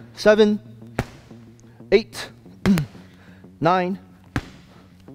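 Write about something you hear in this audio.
Gloved punches smack sharply against a padded strike shield.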